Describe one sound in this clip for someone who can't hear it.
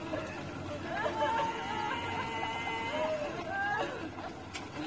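Women wail and cry loudly.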